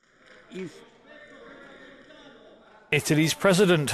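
An elderly man speaks calmly into a microphone in a large hall.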